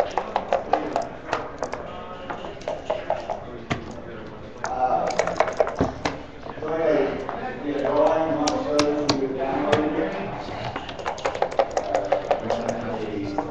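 Dice rattle and clatter in a leather cup.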